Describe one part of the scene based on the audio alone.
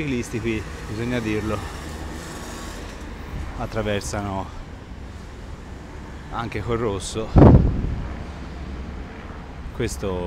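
A bus engine rumbles as the bus approaches.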